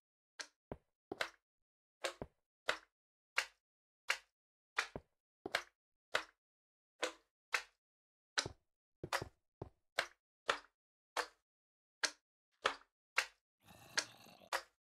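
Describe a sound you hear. Footsteps tap on stone at a steady walking pace.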